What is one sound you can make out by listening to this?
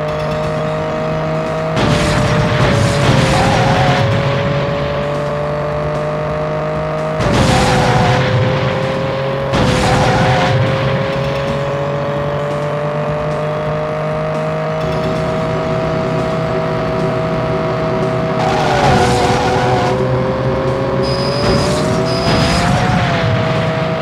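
A car engine whines steadily at high revs.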